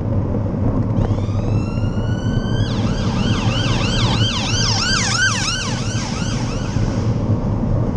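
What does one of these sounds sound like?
An ambulance siren wails close by, first rising and then warbling quickly.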